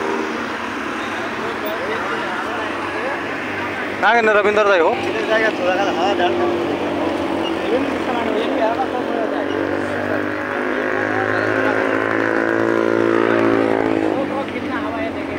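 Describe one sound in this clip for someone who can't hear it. A car engine hums as a car drives past at a distance.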